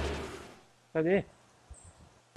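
A small explosion pops with a sharp burst.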